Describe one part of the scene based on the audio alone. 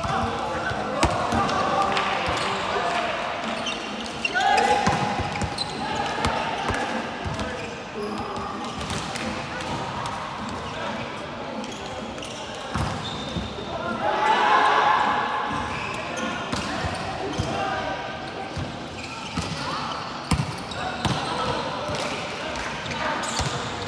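A volleyball thuds as players strike it.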